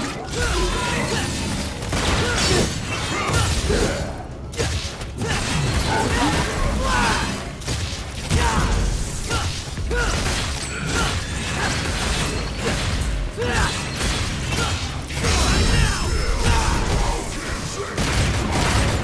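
Sword slashes and impacts clash rapidly.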